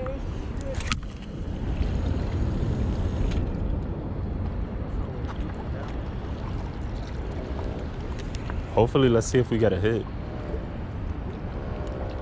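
Water laps gently against rocks.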